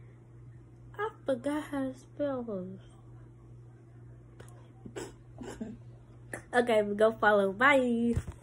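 A young girl speaks close to the microphone with animation.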